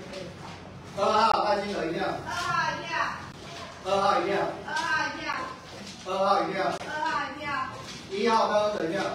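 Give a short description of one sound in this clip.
A middle-aged man reads out loudly, nearby in an echoing room.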